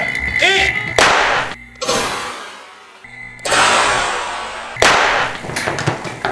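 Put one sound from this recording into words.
A loud bang bursts out and echoes in the room.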